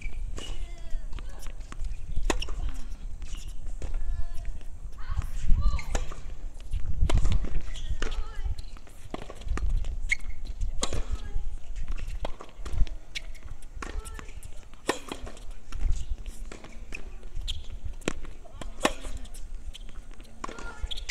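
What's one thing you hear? Tennis balls are struck sharply by rackets, back and forth in a rally.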